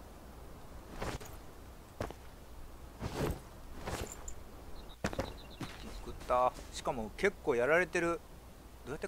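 Footsteps fall on stone and grass.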